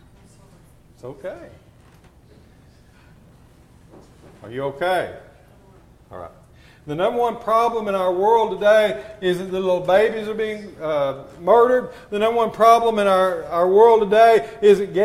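A man speaks slowly and with feeling into a microphone, in a room with some echo.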